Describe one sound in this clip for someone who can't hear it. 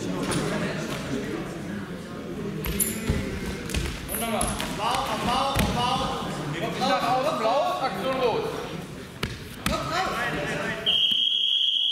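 Wrestlers' feet thump and shuffle on a wrestling mat.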